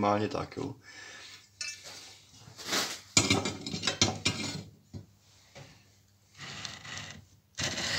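Metal parts clank and scrape against each other.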